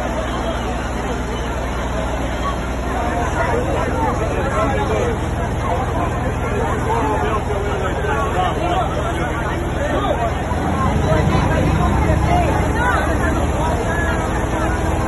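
A crowd of men and women chatter and call out excitedly close by, outdoors.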